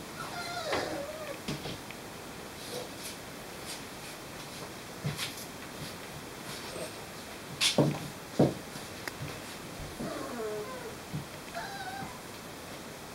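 Puppies whine and yelp softly.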